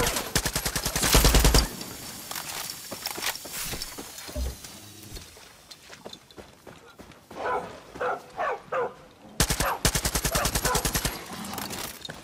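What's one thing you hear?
A rifle fires rapid bursts of shots at close range.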